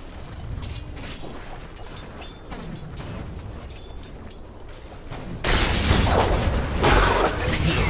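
Game spell and weapon effects crash and whoosh in a fight.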